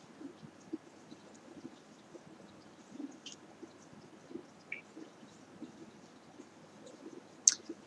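A woman speaks quietly and calmly close to a microphone.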